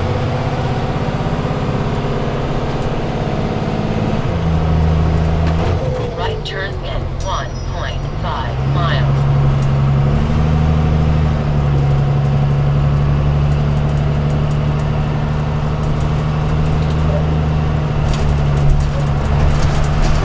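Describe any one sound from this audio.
A motorcycle engine hums steadily and changes pitch as the rider shifts gears.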